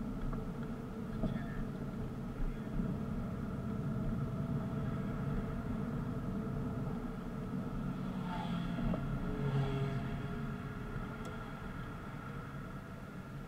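Tyres roll on pavement.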